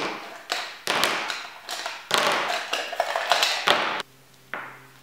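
Pens and markers rattle in a ceramic cup.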